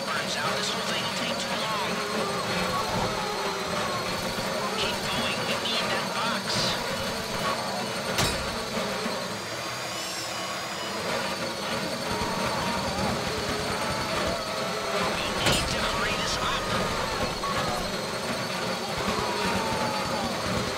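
A power drill whirs steadily, grinding into metal.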